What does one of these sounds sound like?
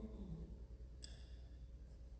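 A small metal cup clinks softly.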